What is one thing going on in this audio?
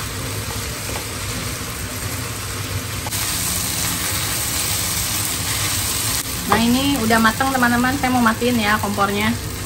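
A metal spatula scrapes and stirs food in a pan.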